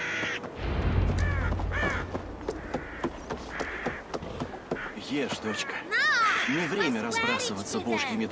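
A horse's hooves clop steadily on wooden planks and then on dirt.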